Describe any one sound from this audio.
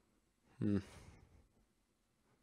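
A young man briefly calls out close to a microphone.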